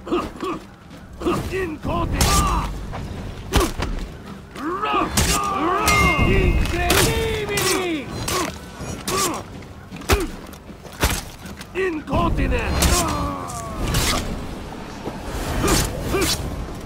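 Metal blades clash and clang sharply again and again.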